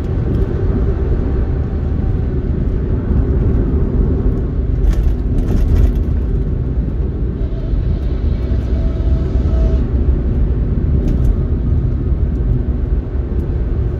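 A car engine hums steadily from inside as it drives along a road.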